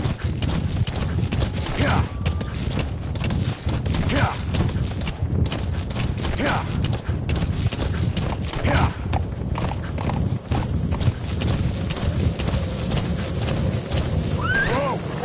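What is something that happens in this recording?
A horse gallops with heavy, fast hoofbeats.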